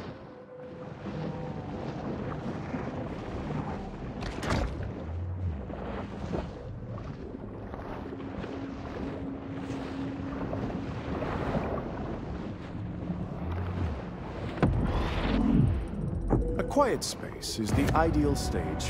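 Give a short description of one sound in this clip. Water swirls and bubbles in a low, steady underwater rumble.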